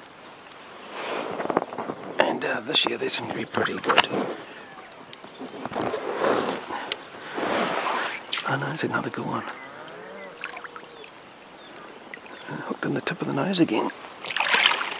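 A fish splashes and thrashes at the surface of the water.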